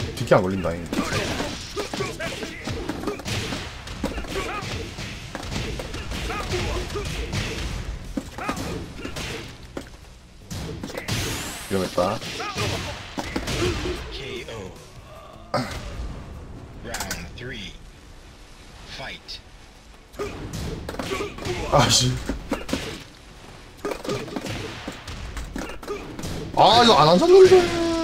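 Punches and kicks land with sharp hits in a fighting game.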